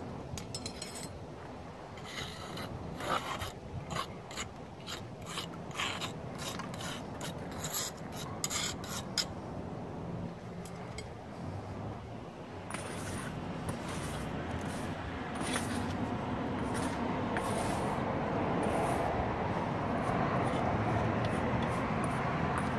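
A metal tool scrapes and scratches against brick mortar.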